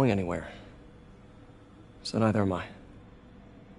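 A man speaks a few short words calmly, close by.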